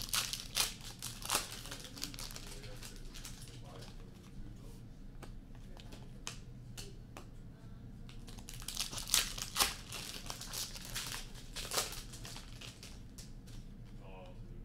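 Trading cards rustle and flick as hands shuffle them.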